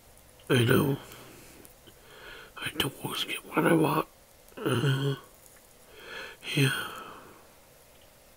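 A young man speaks slowly and drowsily, close to the microphone.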